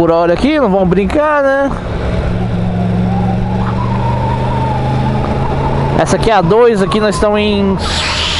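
A motorcycle engine revs up and down sharply as gears change.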